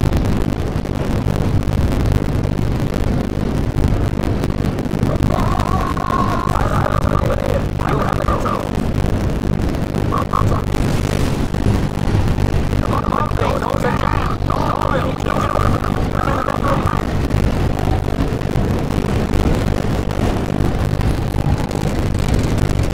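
Aircraft engines drone with a deep, steady roar.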